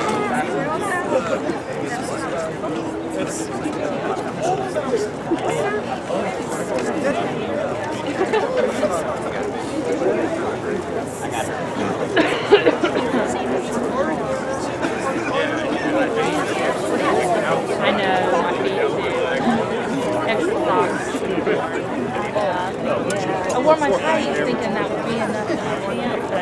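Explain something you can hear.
A band of brass, woodwind and strings plays a lively tune outdoors.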